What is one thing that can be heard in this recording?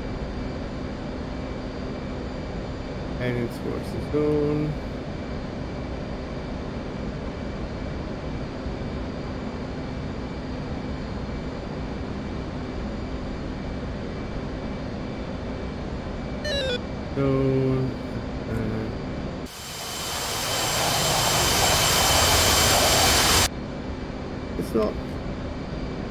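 A jet engine hums steadily.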